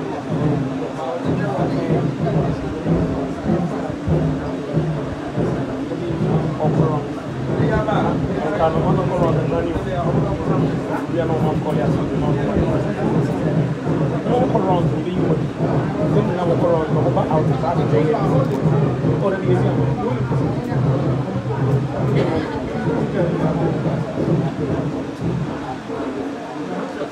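Several men and women chatter nearby.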